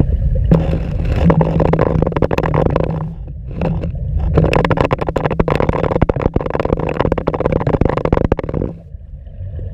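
Water rushes and bubbles close by underwater.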